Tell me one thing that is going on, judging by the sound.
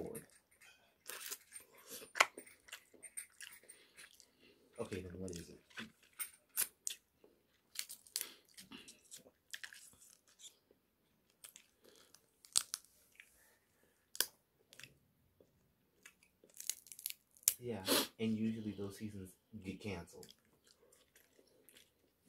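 Food crackles and crunches as fingers break it apart.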